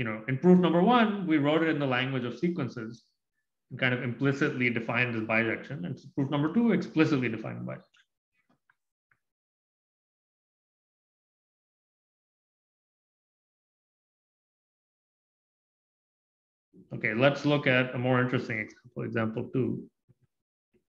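A man talks calmly through a microphone.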